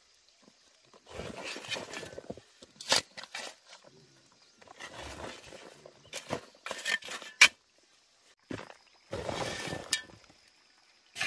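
Loose soil pours into a sack with a soft rustle.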